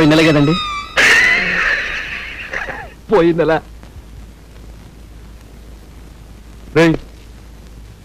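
A man speaks sternly up close in short bursts.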